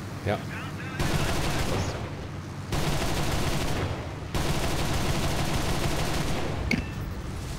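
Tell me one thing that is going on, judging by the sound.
Aircraft machine guns fire in long rapid bursts.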